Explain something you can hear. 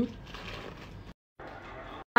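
A knife spreads a soft spread on soft bread.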